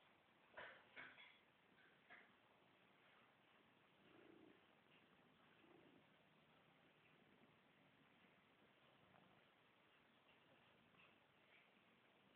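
A hand pats and strokes a cat's fur.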